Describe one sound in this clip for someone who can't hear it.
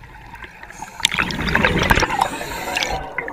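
Bubbles from a diver's breathing gurgle and rush underwater in loud bursts.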